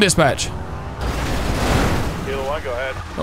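Tyres skid and screech on the road.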